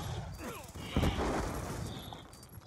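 An explosion booms and rumbles away.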